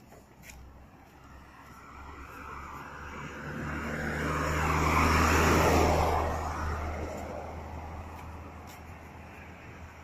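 A car drives past on a nearby road, growing louder and then fading away.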